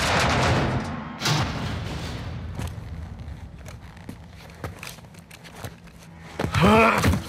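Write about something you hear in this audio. An elevator rumbles and clatters as it moves.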